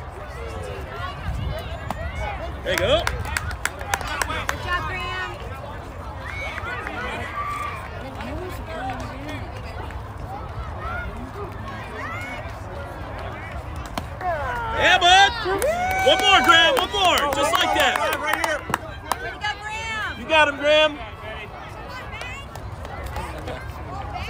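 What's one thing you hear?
Young girls shout and cheer outdoors, close by.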